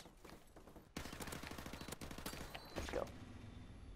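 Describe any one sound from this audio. Rapid automatic rifle fire crackles in a video game.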